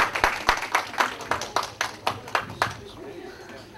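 An audience claps in a room.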